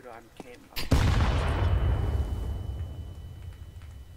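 A rifle fires a few quick shots.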